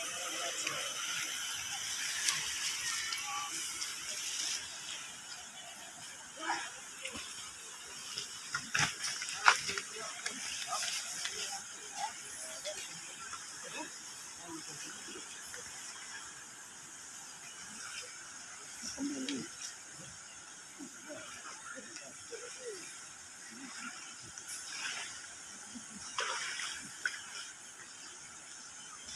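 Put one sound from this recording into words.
A river flows and splashes nearby.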